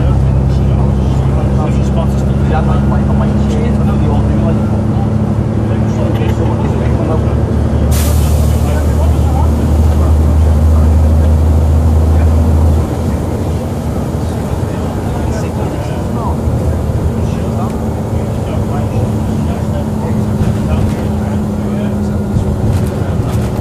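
The bus interior rattles and clatters as it rolls along.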